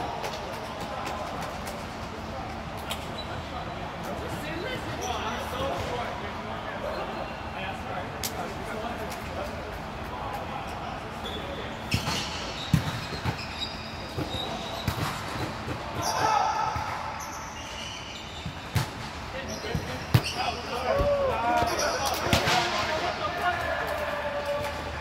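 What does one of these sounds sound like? Young men and women call out and chat around the court.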